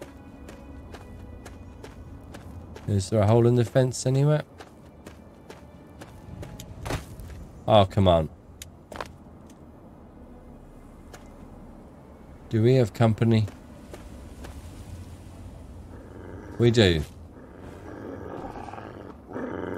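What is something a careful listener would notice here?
Footsteps crunch slowly over gravel.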